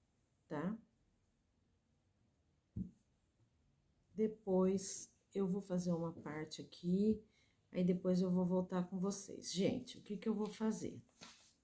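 Hands rustle and rub soft knitted fabric.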